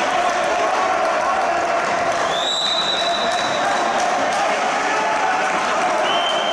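A crowd of spectators murmurs in an echoing hall.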